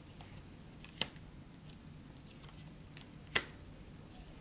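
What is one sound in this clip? A card taps softly onto a table.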